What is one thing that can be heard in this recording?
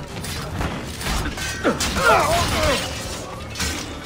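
Metal blades clash in a fight.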